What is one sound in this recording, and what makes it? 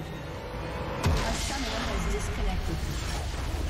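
A magic spell bursts with a sharp crash.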